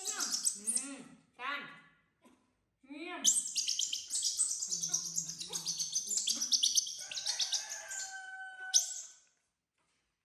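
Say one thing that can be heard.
Baby monkeys squeal and shriek loudly.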